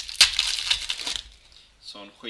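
A foil card wrapper crinkles and rustles.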